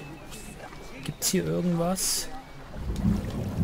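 Water splashes as a swimmer dives in.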